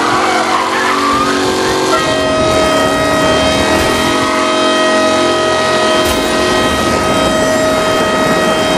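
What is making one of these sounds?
A vintage car engine drones steadily as the car drives along.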